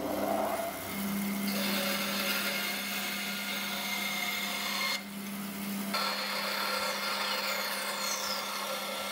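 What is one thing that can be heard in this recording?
A band saw hums steadily while running.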